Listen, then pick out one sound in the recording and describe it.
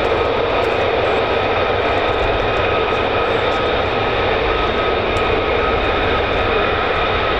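A distant aircraft's rotors drone steadily.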